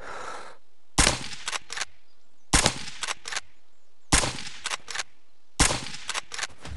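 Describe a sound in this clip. A lever-action rifle fires several shots.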